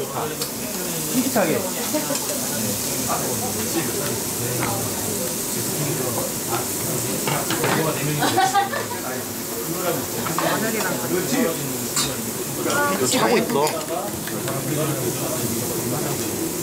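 Metal tongs clink against a grill.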